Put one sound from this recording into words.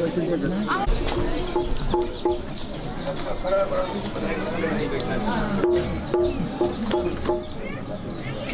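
A keyboard plays a melody through a loudspeaker.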